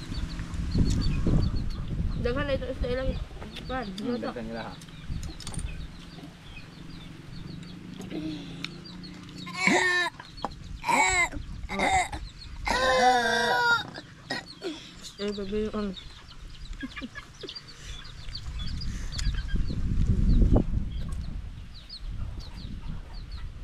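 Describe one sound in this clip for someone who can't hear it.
Shells crack and clink as people eat by hand.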